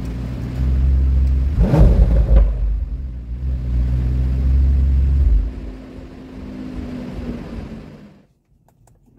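A car engine revs loudly from the exhaust, rising and falling.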